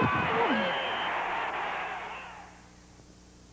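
A stadium crowd cheers.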